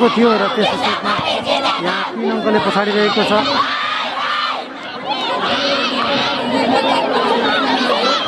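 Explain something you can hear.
A large outdoor crowd chatters, shouts and cheers loudly.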